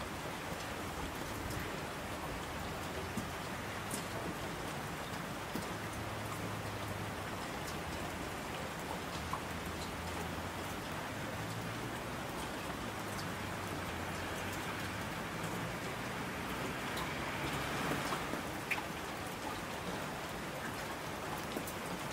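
Torrents of water rush down a mountainside.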